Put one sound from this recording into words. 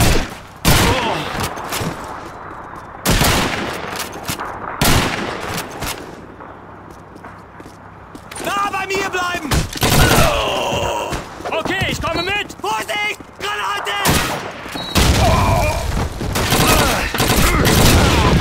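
Gunshots fire in loud bursts that echo in a confined space.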